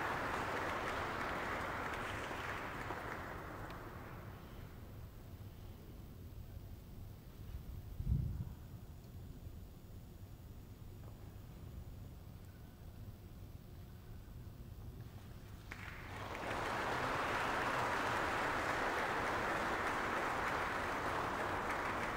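An audience applauds steadily, fades away, then breaks into applause again.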